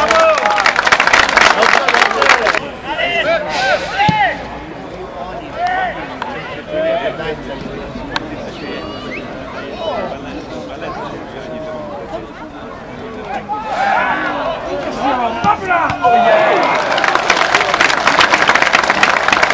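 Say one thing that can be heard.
A football crowd cheers and roars in an open-air stadium.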